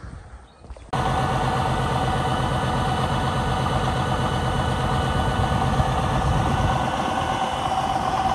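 A truck's diesel engine idles steadily nearby.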